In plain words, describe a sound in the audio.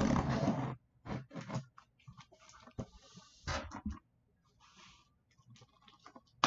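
Stiff card sheets slide and rustle as they are handled.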